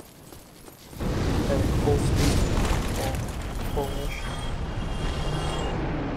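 Flames roar loudly.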